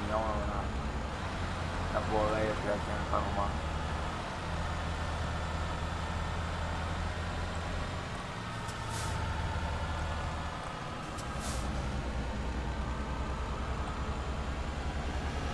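A bus engine hums steadily with a low drone.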